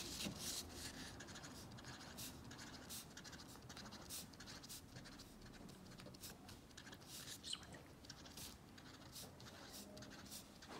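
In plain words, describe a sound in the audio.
A marker taps dots onto paper.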